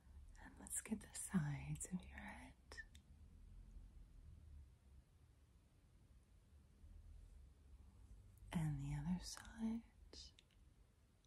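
A woman speaks softly and close to a microphone.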